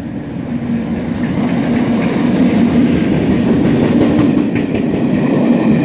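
Train wheels rattle and clack over the rails as the train passes.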